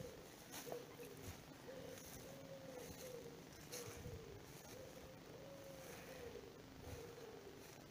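Dry grass and leaves rustle as someone pushes through brush.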